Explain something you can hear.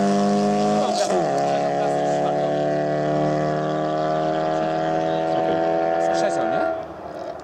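A rally car engine drops in pitch as the car passes and races away, then fades.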